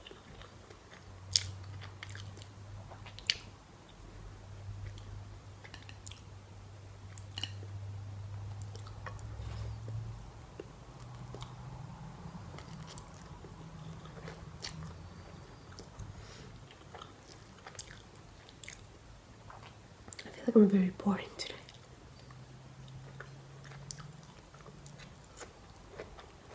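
Chopsticks click against a bowl.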